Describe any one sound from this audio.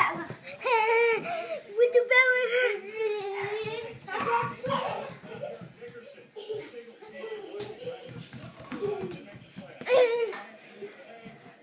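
A young boy shouts and squeals excitedly close by.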